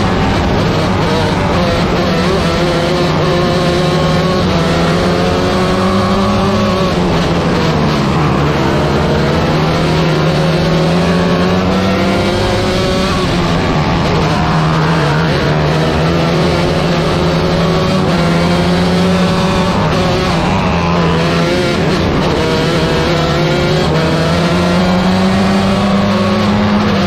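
Other race car engines roar nearby.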